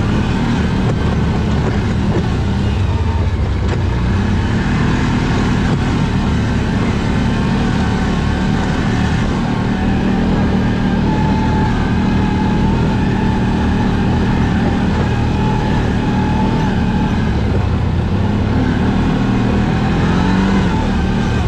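An all-terrain vehicle engine drones steadily close by.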